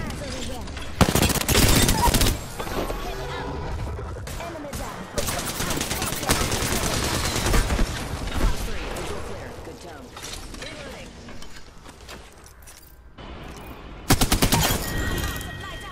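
A video game gun fires rapid bursts of shots.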